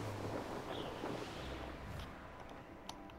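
Wind blows in a snowstorm.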